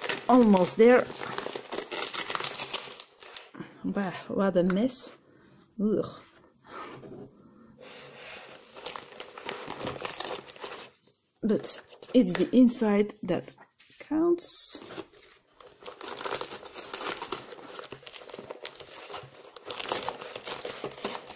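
A paper bag rustles and crinkles as a hand rummages inside it.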